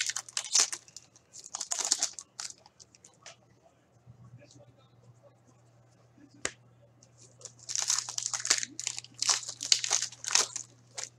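Foil wrappers crinkle and tear as hands open card packs.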